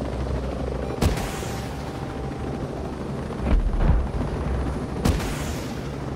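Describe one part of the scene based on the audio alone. Rockets fire from a helicopter with sharp bursts.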